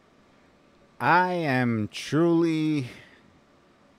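A man speaks close to a microphone, with drawn-out words.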